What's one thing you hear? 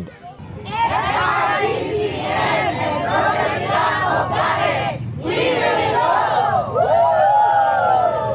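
A crowd of men and women shouts and cheers together.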